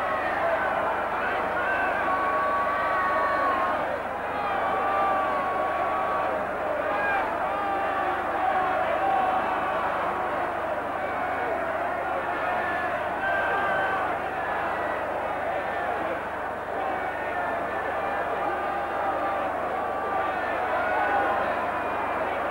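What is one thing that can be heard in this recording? A large crowd of men sings loudly together in a big echoing hall.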